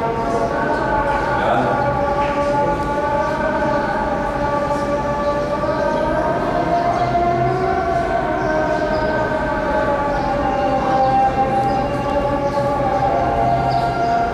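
A man recites a prayer in a slow, drawn-out chanting voice.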